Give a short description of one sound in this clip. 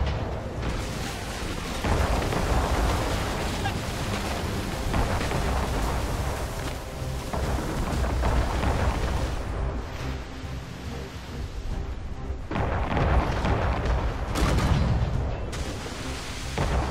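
Wind blows strongly across open water.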